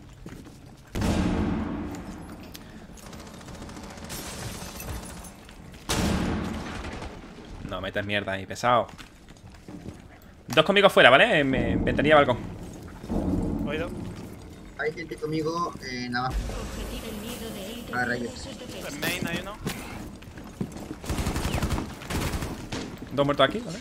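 Gunshots and blasts from a game sound in bursts.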